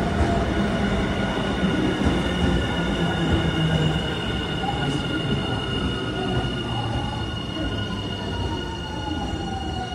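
Train wheels squeal against the rails in steady high tones.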